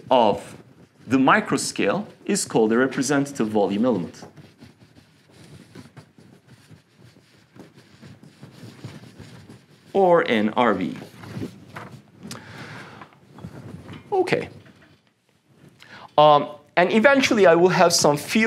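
A man speaks calmly, as if lecturing, over a microphone.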